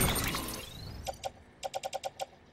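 Short electronic beeps tick quickly in a row.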